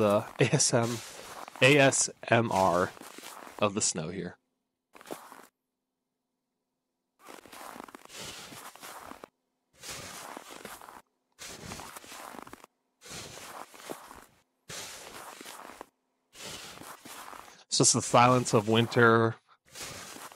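A shovel scrapes and scoops snow in repeated strokes.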